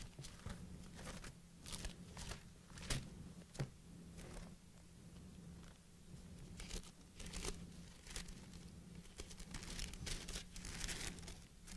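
Paper pages rustle and turn.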